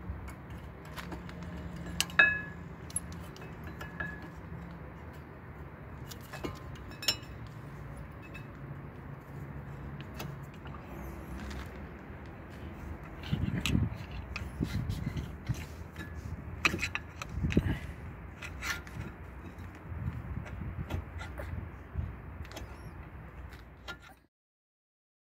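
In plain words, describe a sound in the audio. Metal brake parts click and clink under a hand.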